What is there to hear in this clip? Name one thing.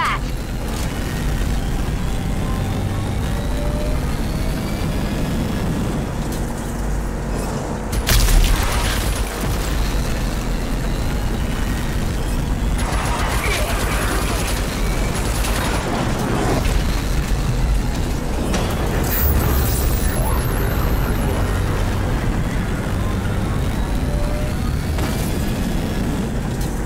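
A vehicle engine roars steadily as a buggy speeds along.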